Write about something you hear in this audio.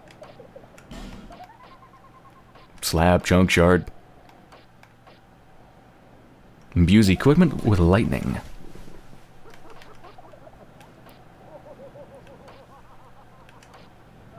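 Soft menu clicks tick now and then as a selection moves between items.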